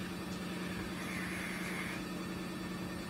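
A man breathes out a long puff of vapour.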